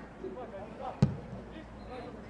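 A football is struck with a hard kick.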